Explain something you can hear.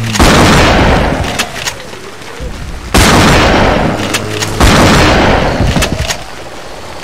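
A shotgun fires loud blasts that echo briefly.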